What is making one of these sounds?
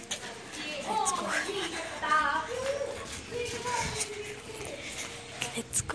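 A young girl speaks close to a phone's microphone.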